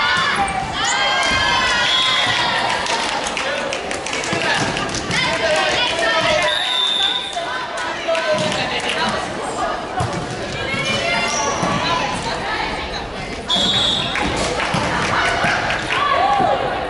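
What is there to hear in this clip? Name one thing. Young women shout and cheer in a large echoing hall.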